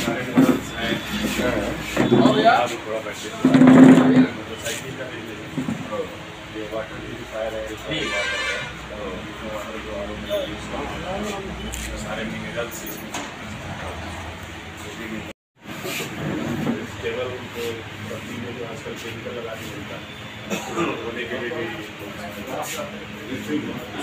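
A crowd of men chatter all around indoors.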